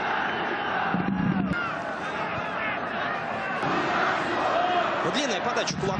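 A large stadium crowd roars and whistles.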